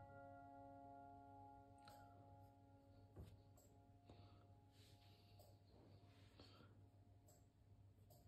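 A pastry brush dabs softly on dough.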